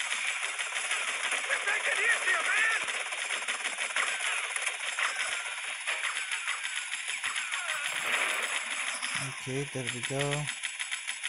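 Guns fire in rapid, rattling bursts.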